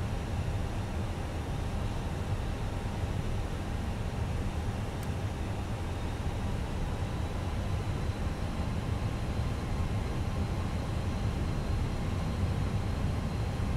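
Jet engines hum in a low, steady drone.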